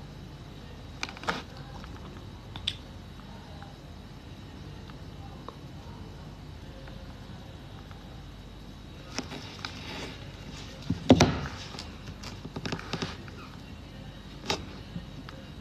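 A phone is handled, with small knocks and clicks close by.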